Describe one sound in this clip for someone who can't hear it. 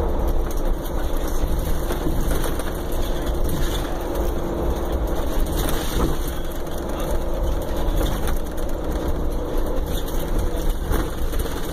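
Tyres hum along the road.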